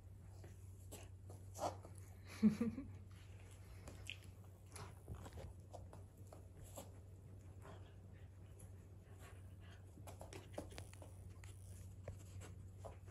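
A dog's paws patter softly on a foam mat.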